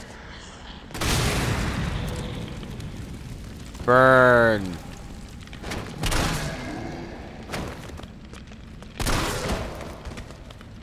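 Gunshots boom with a long echoing roar.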